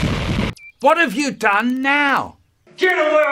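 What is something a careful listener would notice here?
An elderly man speaks with exaggerated animation close by.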